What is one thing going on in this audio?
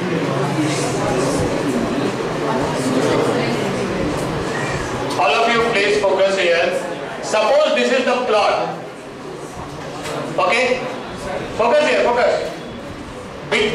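A man speaks calmly into a headset microphone, explaining.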